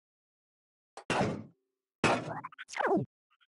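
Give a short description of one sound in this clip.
A game character jumps with a loud swooshing sound effect.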